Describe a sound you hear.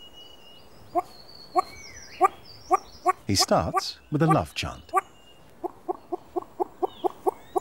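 A large bird makes rapid clicking calls.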